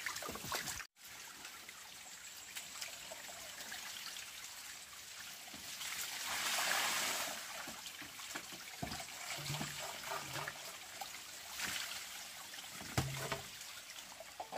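Bamboo knocks and clatters on a wooden floor.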